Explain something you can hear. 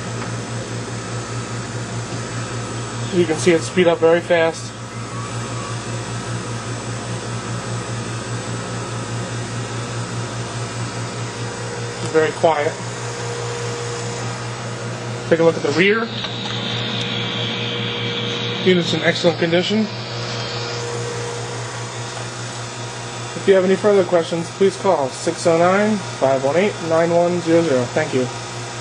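A centrifuge hums with a steady low drone.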